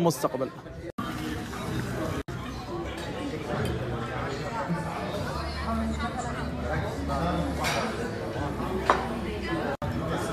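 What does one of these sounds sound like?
Several people chatter in a busy room.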